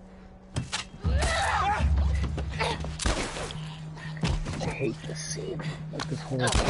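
A young woman groans and gasps in a struggle.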